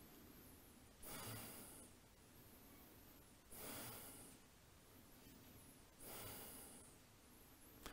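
A man breathes out slowly and deeply, close by.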